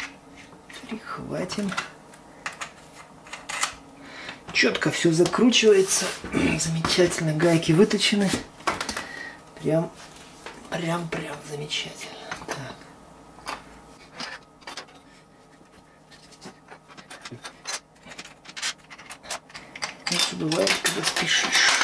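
Small metal parts click and clink as they are handled.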